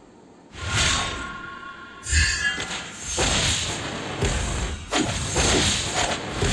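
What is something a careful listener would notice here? Game spell effects whoosh and burst in quick succession.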